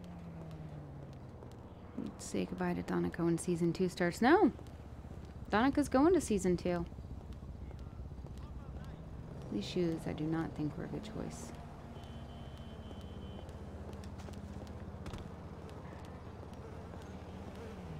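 Footsteps tap on pavement as a woman walks.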